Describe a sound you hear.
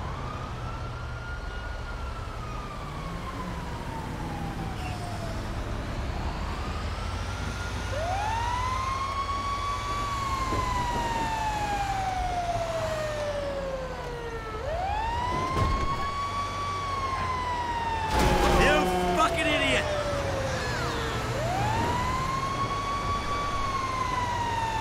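A fire engine siren wails, rising and falling.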